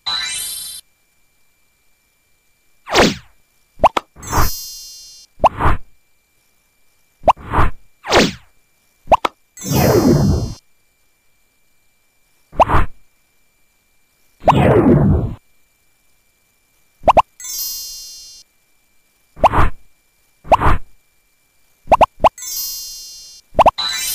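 Short bright chimes and swooshing effects sound again and again.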